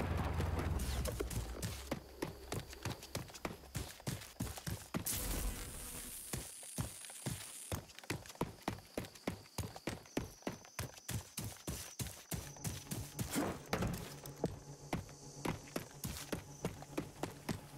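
Quick footsteps tread over grass and dirt.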